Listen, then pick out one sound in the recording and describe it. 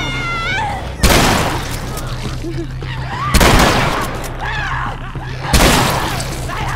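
Loud shotgun blasts go off, one after another, each ringing briefly.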